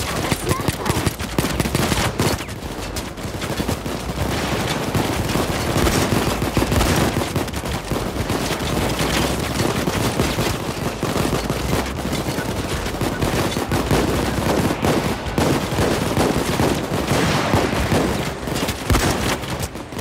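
Rapid gunfire bursts out in loud, repeated cracks.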